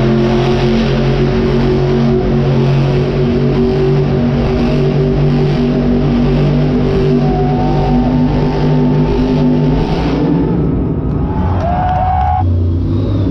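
A monster truck engine roars loudly in a large echoing arena.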